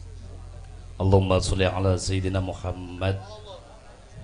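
A woman sings through a loudspeaker.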